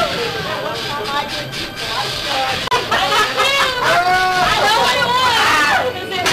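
Several women laugh and talk excitedly close by.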